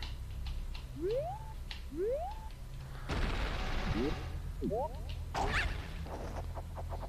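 Quick rising whistles sound as a small figure springs up into the air.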